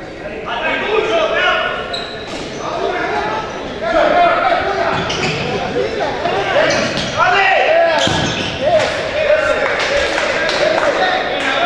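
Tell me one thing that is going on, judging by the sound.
Men shout to each other across an echoing sports hall.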